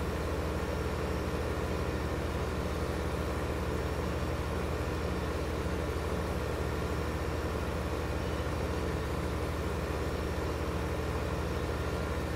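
A tractor engine hums steadily with a low drone.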